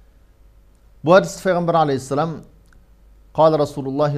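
A man speaks calmly and steadily into a microphone, close by.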